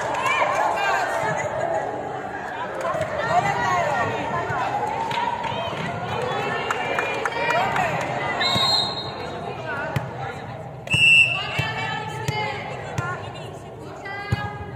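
Sneakers squeak on the hall floor.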